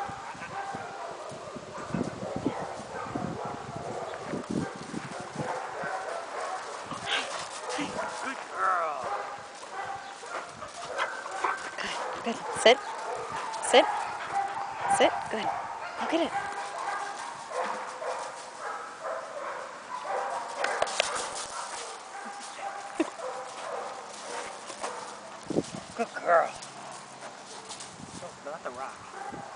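A man talks to a dog with animation, close by.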